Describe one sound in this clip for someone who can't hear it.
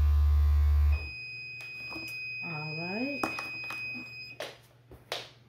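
A heat press beeps with a steady high tone.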